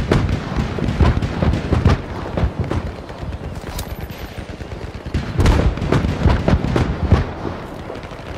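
Gunfire and explosions boom repeatedly nearby and in the distance.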